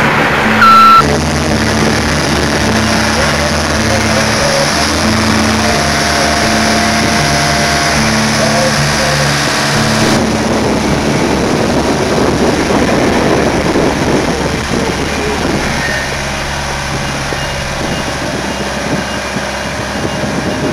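A straddle carrier's engine runs with a steady low hum.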